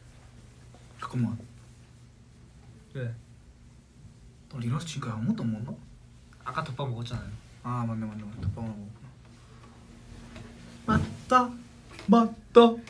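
Two young men talk casually with each other, close by.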